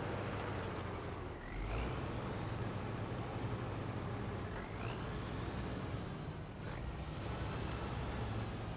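A heavy truck engine rumbles steadily as the truck crawls over snowy ground.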